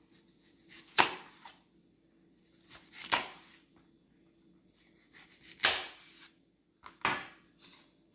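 A knife knocks against a cutting board.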